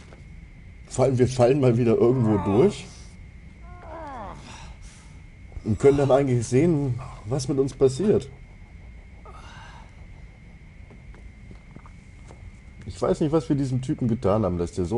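A man grunts and pants loudly with effort.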